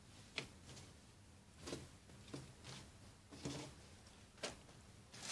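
Cloth rustles and swishes as a garment is folded by hand.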